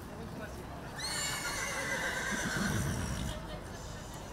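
A horse whinnies loudly nearby.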